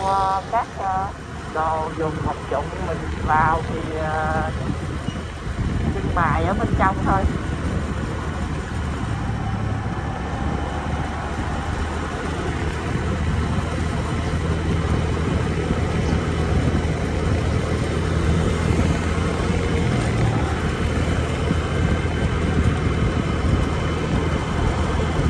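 A vehicle's engine hums steadily as it drives along.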